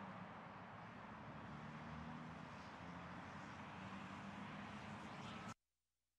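A bus rumbles past.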